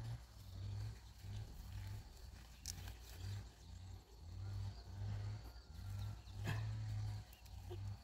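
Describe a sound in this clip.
Leafy plants rustle as they are picked by hand.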